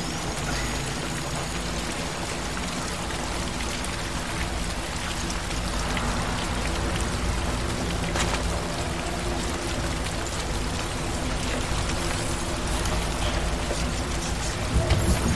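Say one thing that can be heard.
Heavy rain falls steadily all around.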